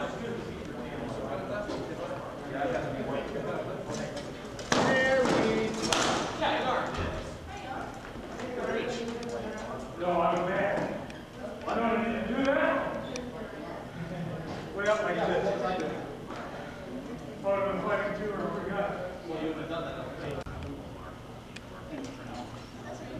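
Men shout and call out with animation nearby.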